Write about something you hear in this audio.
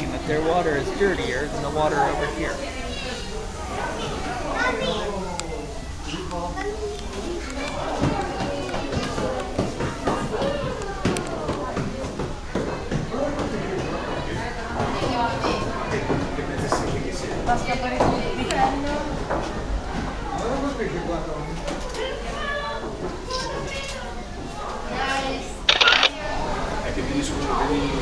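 A crowd of adults and children chatter and talk nearby in an echoing room.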